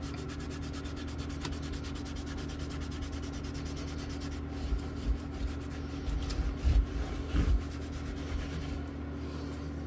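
A cloth rubs and wipes across a guitar neck.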